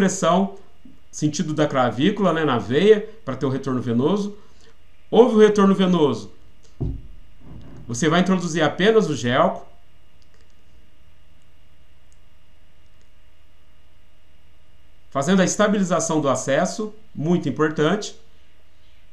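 A man talks calmly into a microphone, close by, with pauses.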